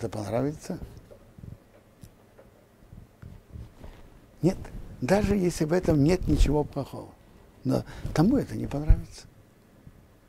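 An elderly man speaks calmly and expressively into a close microphone, with pauses.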